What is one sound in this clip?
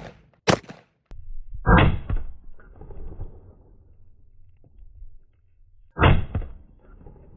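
A rifle fires loud sharp shots outdoors.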